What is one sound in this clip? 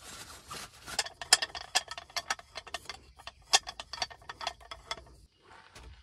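A metal grill pan's handles clack together.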